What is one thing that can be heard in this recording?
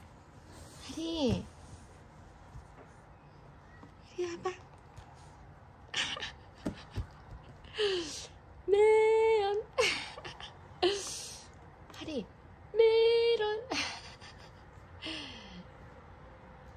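A woman speaks playfully and sings up close.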